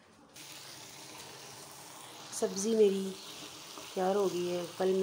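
Sauce sizzles and bubbles in a pan.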